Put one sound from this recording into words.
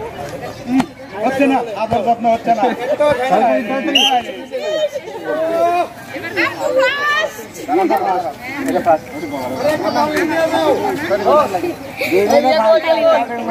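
Women cheer and laugh loudly.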